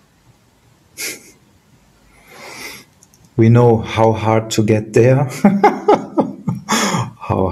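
A middle-aged man laughs over an online call.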